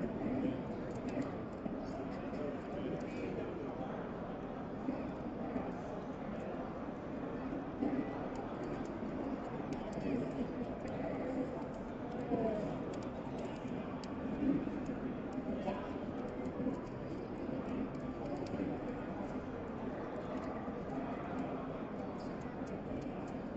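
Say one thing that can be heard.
A crowd of people chatter in a large room.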